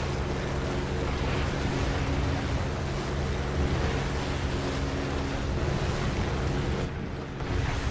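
A propeller plane's engine drones steadily close by.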